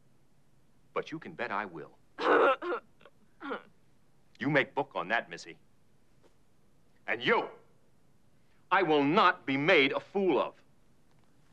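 A man speaks sternly nearby.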